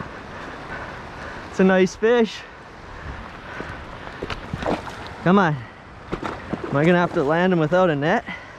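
A river flows and ripples over stones nearby.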